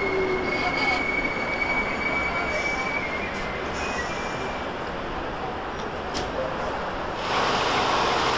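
A tram hums while standing at a stop.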